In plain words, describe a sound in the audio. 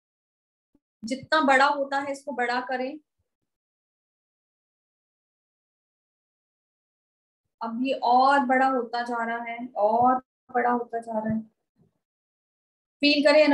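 A woman speaks calmly and clearly into a nearby microphone, with pauses.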